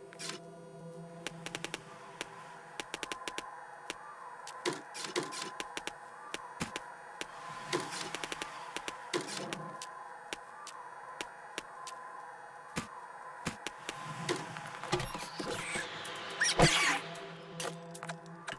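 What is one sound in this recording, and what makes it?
Item clicks and rustles tick quickly as objects are moved around.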